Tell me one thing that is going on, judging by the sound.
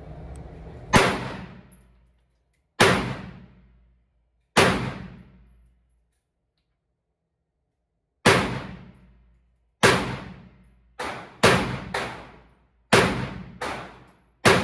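A handgun fires loud shots that echo in an indoor range.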